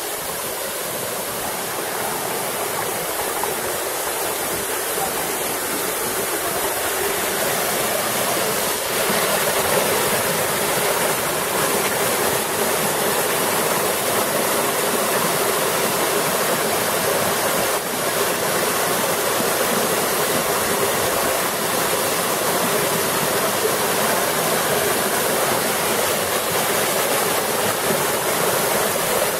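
A waterfall roars and splashes over rocks, growing louder as it draws near.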